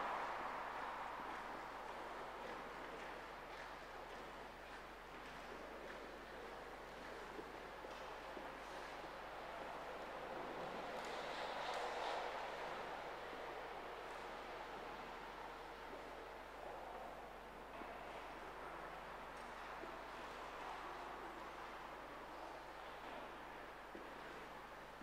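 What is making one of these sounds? A man speaks calmly and slowly in a large echoing hall.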